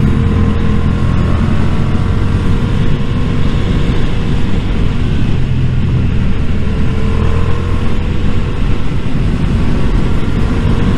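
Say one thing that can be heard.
A motorcycle engine hums steadily close by as the bike rides along.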